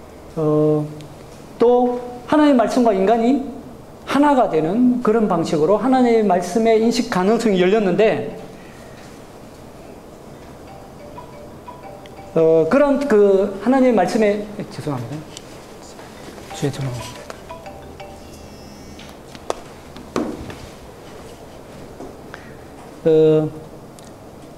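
A man lectures with animation through a microphone, with long pauses.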